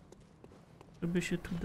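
A young man speaks casually into a microphone.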